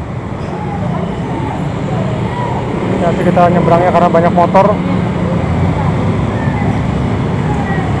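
Motorbikes ride past close by.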